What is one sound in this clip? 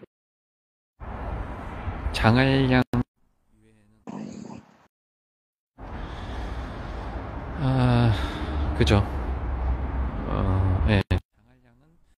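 A young man speaks close to a phone microphone, with animation.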